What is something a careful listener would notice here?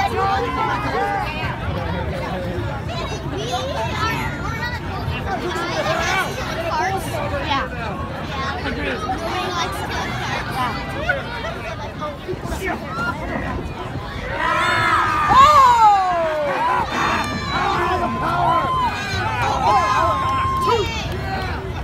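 An outdoor crowd chatters and calls out.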